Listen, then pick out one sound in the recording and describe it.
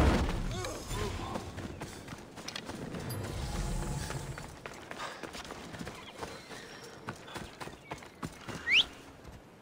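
Footsteps tread on grass and dirt.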